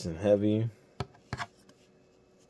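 A playing card is flipped and taps against another card.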